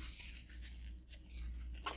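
A young woman licks her fingers with a wet smack.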